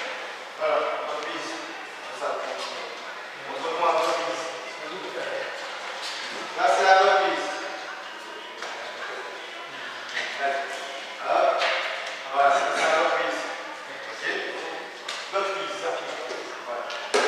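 A young man talks loudly with animation in a large echoing hall.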